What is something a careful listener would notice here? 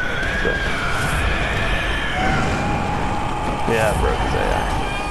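A monstrous beast growls and roars.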